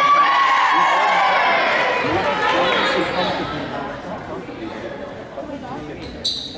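Young women shout and cheer together in a large echoing gym, then quiet down.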